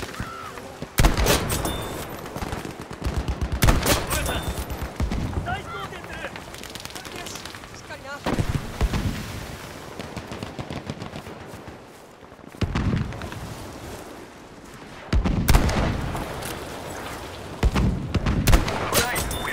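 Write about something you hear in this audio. A sniper rifle fires loud shots that echo across open ground.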